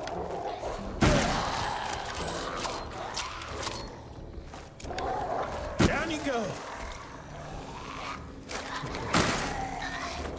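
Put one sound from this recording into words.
A shotgun fires loud blasts that echo.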